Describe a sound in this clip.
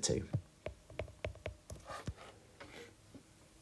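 A stylus taps and scratches on a glass tablet.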